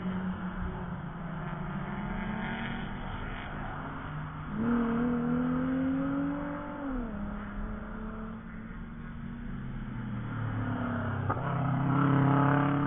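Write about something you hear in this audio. Wind blows across an open field.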